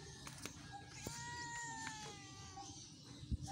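A cat meows loudly nearby.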